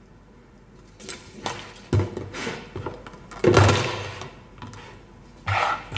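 Plastic containers knock and clatter against each other.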